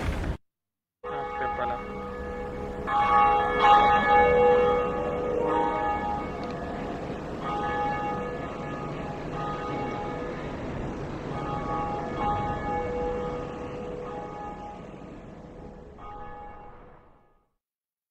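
A large bell tolls and rings out.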